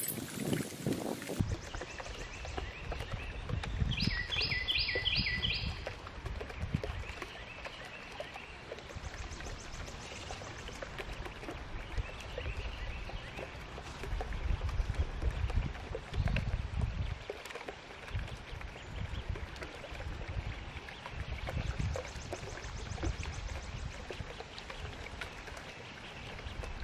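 Ducklings peep softly and steadily.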